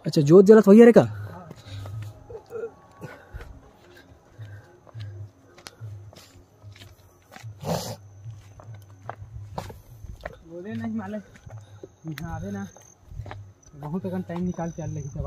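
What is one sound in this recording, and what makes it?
Footsteps crunch on dry leaves and stony ground.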